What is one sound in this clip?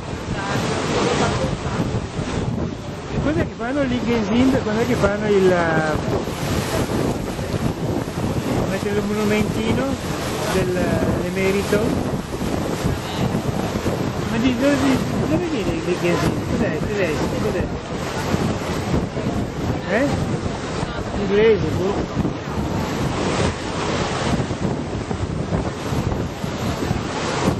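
Small waves lap and splash against a boat on open water.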